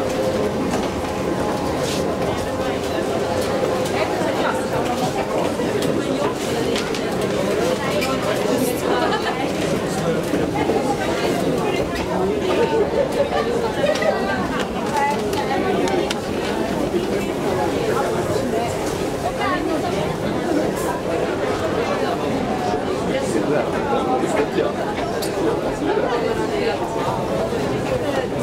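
An escalator hums and rattles steadily.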